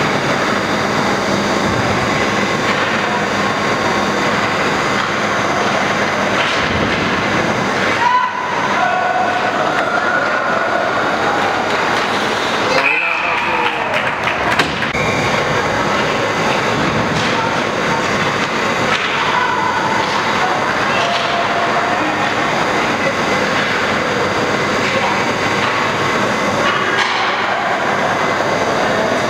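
Ice skates scrape and carve across the ice in a large echoing rink.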